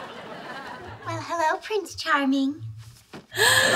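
A young woman talks briefly close to a microphone.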